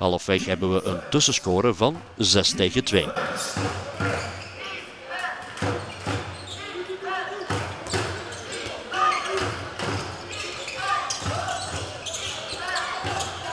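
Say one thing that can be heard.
A ball bounces on a hard court floor.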